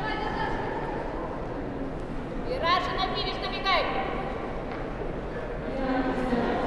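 Young people chat casually at a distance in a large echoing hall.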